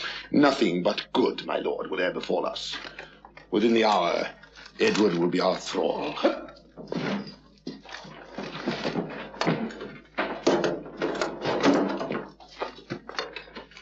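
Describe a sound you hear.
A man speaks forcefully close by.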